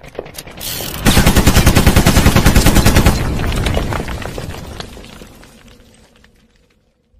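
A loud explosion booms and crackles, then fades away.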